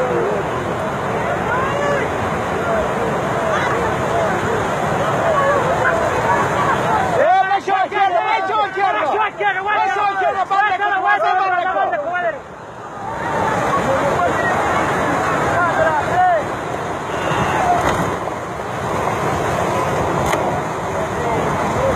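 A crowd of men shout and call out excitedly nearby.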